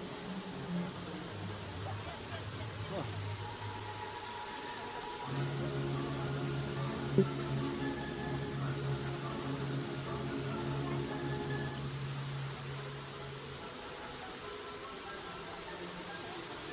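Fountain jets spray and splash steadily into a pond outdoors.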